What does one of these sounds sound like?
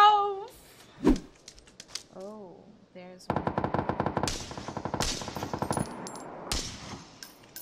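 Rifle shots crack loudly in a video game.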